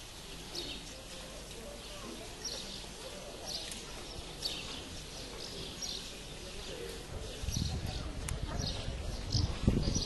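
Many feet shuffle slowly on a paved street.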